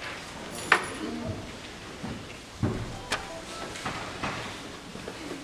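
Adults murmur quietly nearby.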